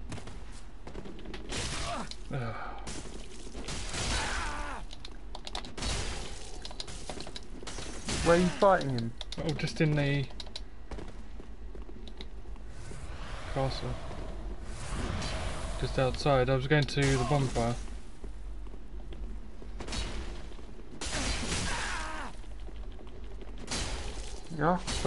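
Swords clash and slash.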